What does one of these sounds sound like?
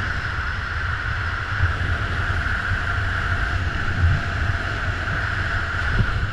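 Strong wind roars and buffets steadily during a high-speed fall through the air.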